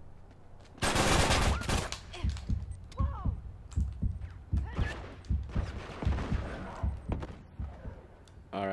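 A gun fires in loud rapid bursts.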